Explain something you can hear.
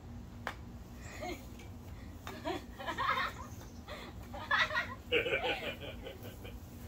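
A young woman calls out with animation.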